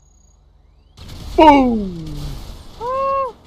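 A car explodes with a loud blast.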